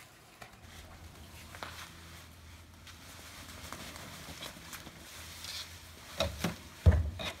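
A tree's branches scrape and rustle as it is dragged across pavement.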